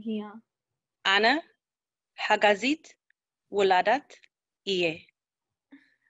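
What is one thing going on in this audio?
A woman speaks in short, measured phrases over an online call.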